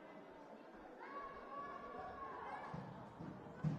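Sneakers squeak on a hard floor in an echoing hall.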